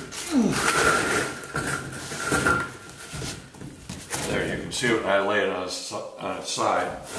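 A hand brushes across a rough wooden board.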